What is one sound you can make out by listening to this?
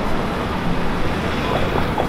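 A scooter hums past close by.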